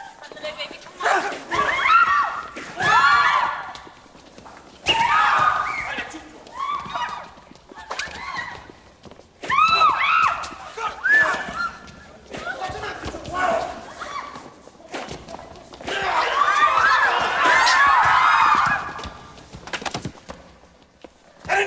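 A crowd of young men and women shouts and cheers loudly in a large room.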